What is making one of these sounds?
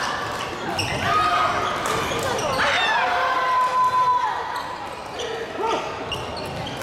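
Sports shoes squeak on a wooden court.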